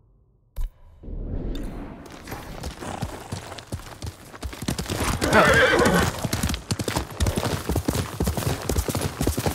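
Horse hooves clop quickly on a dirt path.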